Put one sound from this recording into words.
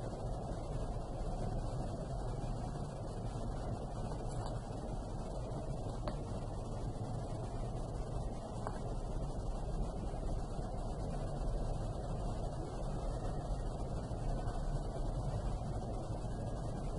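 A felt-tip marker scratches softly on paper.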